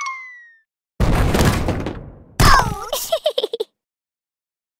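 Heavy stone balls tumble down and thud onto the ground.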